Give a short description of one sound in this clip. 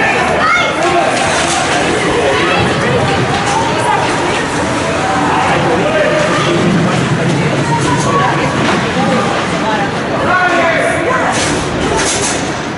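Several boys talk and shout nearby in a large echoing rink.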